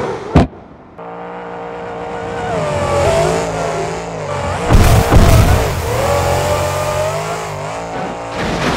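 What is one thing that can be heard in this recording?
An engine roars as a monster truck speeds along.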